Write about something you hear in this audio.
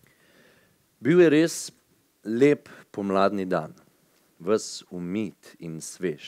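A woman reads aloud into a microphone.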